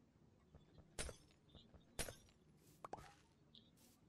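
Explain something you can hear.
A pickaxe breaks dirt blocks with short crunches.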